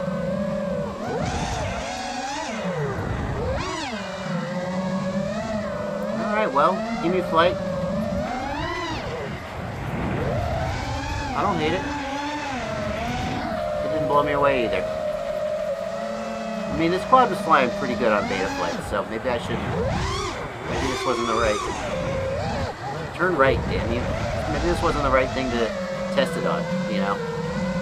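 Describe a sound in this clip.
A small drone's motors whine loudly, rising and falling in pitch as it speeds and turns.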